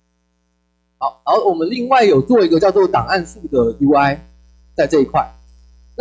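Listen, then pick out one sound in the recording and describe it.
A young man speaks with animation into a microphone, heard over loudspeakers.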